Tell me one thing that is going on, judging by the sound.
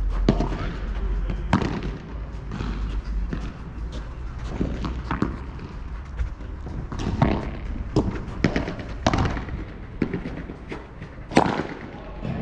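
Paddles strike a ball with sharp pops in a rally.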